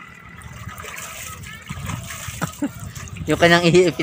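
Water pours and splashes back down.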